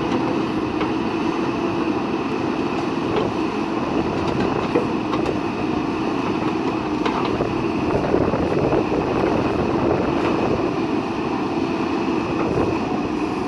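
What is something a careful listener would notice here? A diesel engine rumbles steadily nearby.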